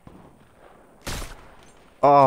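A sniper rifle fires a single sharp shot.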